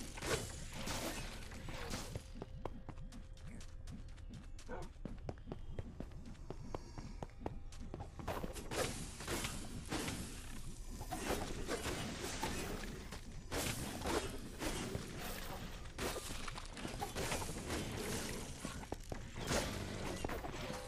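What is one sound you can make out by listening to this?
Fiery blasts burst with a whoosh.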